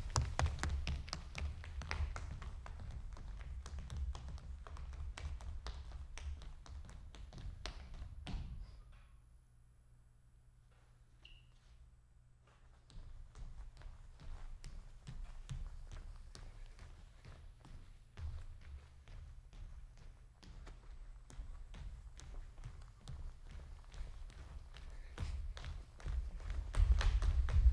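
Shoes tap and scuff quickly on a wooden stage floor.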